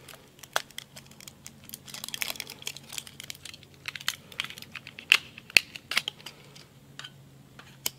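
Hands rustle and tear a plastic wrapper close by.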